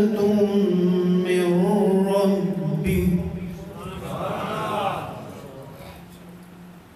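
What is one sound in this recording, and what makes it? A man chants in a long, drawn-out melodic voice through a microphone and loudspeakers, in a reverberant room.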